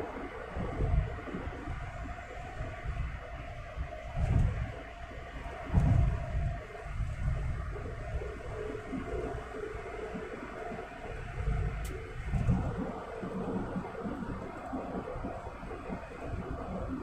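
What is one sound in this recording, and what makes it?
A car's engine hums steadily, heard from inside the car.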